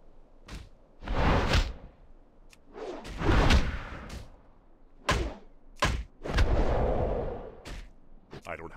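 A sword strikes a wooden target with heavy thuds.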